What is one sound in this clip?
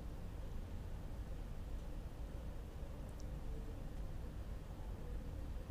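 Water pours from a hose into a bucket.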